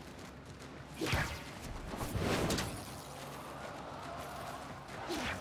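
A game character swooshes through quick dodges and rolls.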